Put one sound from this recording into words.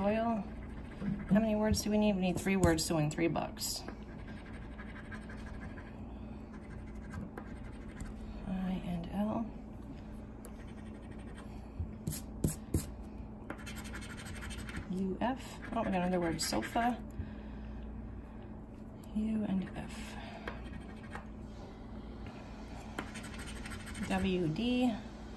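A coin scratches quickly across a card.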